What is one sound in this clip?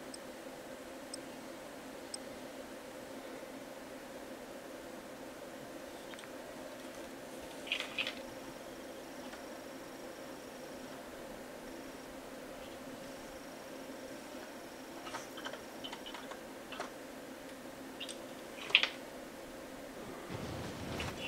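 Soft music plays steadily.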